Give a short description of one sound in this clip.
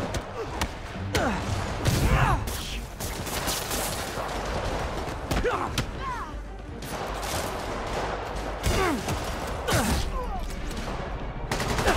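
Men grunt and shout during a fight.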